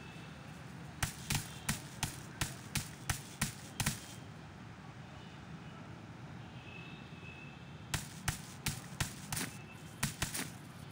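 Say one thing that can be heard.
Footsteps slap quickly on pavement.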